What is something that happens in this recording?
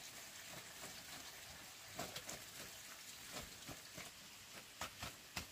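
Food clinks and taps against a metal pot as it is scooped in.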